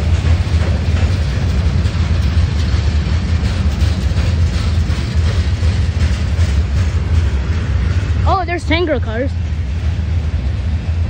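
A freight train rumbles past close by, its wheels clattering on the rails.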